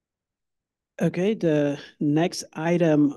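A man speaks calmly through a microphone, close and loud.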